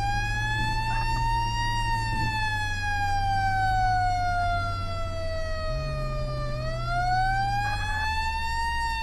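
A vehicle engine hums low as it drives.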